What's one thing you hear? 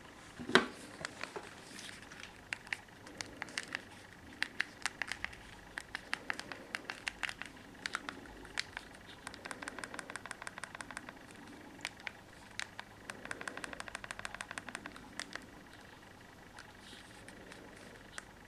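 Phone keys click rapidly as buttons are pressed.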